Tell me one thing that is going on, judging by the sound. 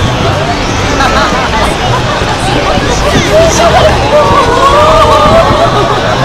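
A crowd of men and women chatters and calls out nearby outdoors.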